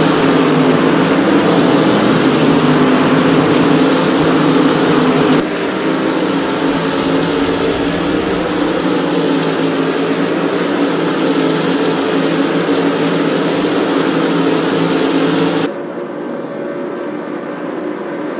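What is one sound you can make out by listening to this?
Racing car engines roar loudly at high revs.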